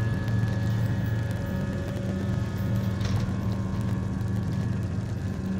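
Small footsteps patter and climb on hollow metal shelves.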